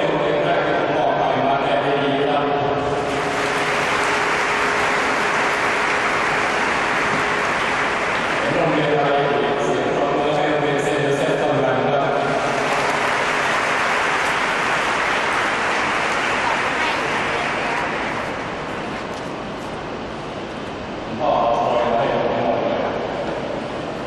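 A brass band plays a tune.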